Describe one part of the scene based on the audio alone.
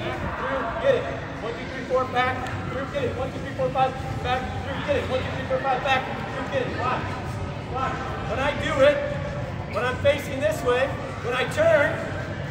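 A man speaks calmly through a microphone, in a large echoing hall.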